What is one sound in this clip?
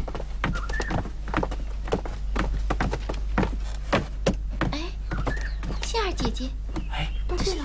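Footsteps tap on a stone pavement outdoors.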